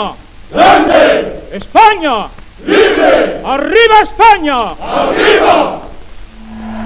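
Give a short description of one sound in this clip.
A large crowd chants loudly in unison.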